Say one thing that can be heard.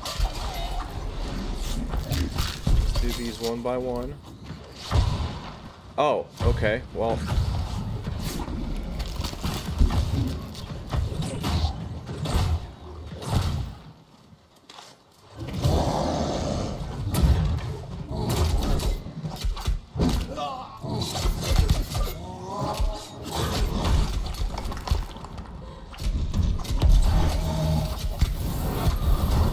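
Magical blasts whoosh and crackle in a fight.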